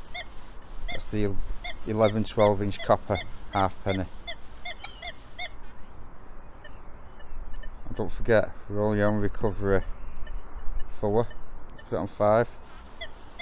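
A metal detector gives loud, wavering tones in short bursts.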